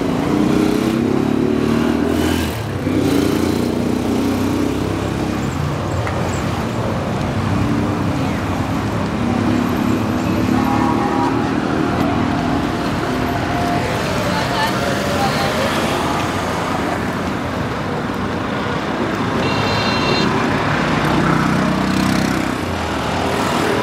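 Car engines hum and tyres roll in busy street traffic outdoors.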